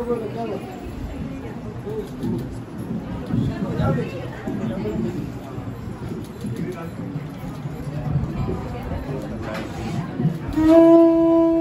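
Several men and women talk quietly nearby.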